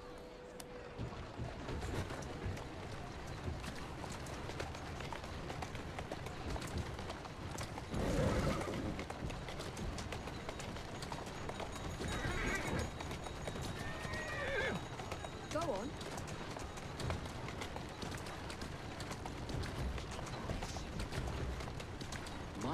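Horse hooves clop on a stone street.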